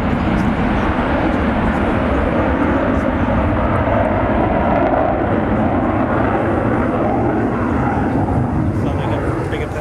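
A jet engine roars loudly overhead.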